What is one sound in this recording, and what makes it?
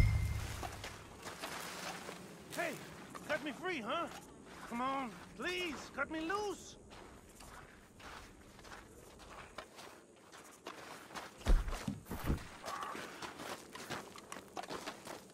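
Footsteps crunch on dry dirt and gravel.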